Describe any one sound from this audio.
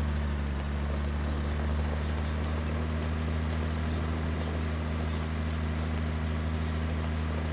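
A trailer rattles over a bumpy dirt track.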